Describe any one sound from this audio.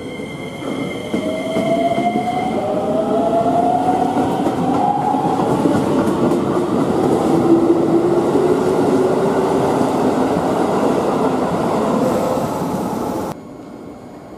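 A train pulls away, its motors whining upward in pitch as it gathers speed.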